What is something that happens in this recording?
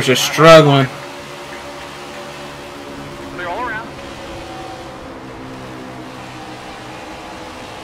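Race car engines roar at high speed.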